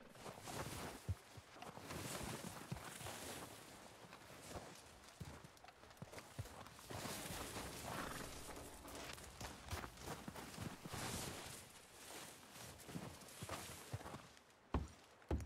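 Boots crunch through snow with each step.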